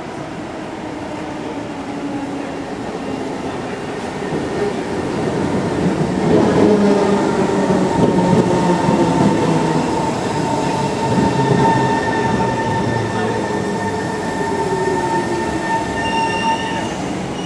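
A train approaches, growing louder as it pulls into a station.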